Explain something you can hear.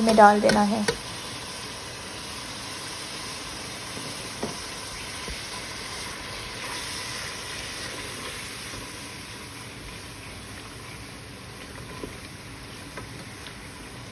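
Spices sizzle and hiss as they hit a hot sauce in a pan.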